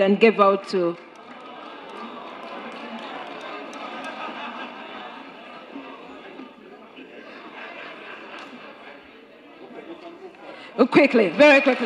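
A crowd murmurs and chatters.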